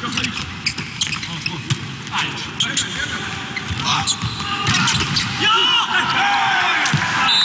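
A volleyball is struck with loud slaps.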